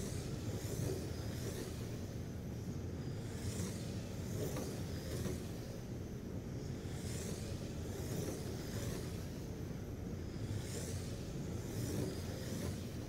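Small electric model cars whine at high pitch as they race past, rising and fading.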